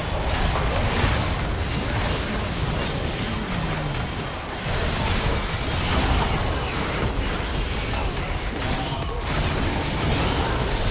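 Spell effects crackle and burst in a fast game fight.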